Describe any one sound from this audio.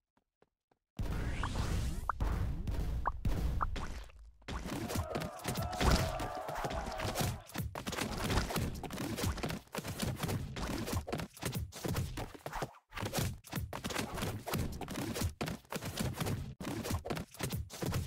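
Loud splattering game effects and thuds burst over and over.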